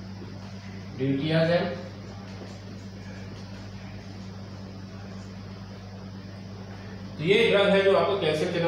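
A man speaks in a lecturing tone, close by.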